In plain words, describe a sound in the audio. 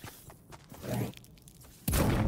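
A pickaxe strikes stone with a hard clang.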